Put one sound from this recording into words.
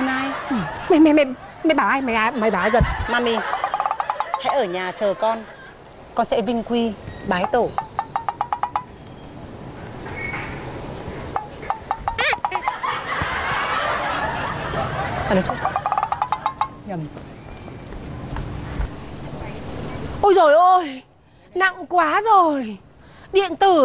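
A middle-aged woman speaks with emotion close by.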